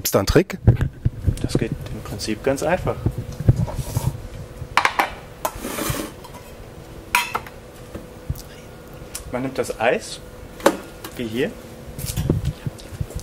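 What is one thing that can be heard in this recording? Metal clinks against metal.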